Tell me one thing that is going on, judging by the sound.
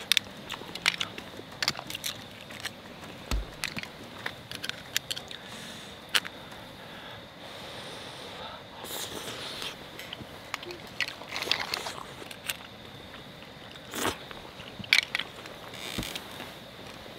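Metal tongs click and clatter against food.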